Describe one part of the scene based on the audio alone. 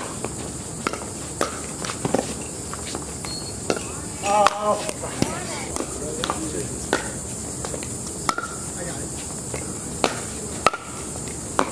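Paddles hit a plastic ball with sharp hollow pops, back and forth.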